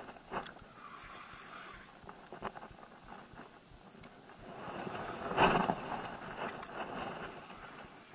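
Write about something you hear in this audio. A fishing reel clicks as its handle turns.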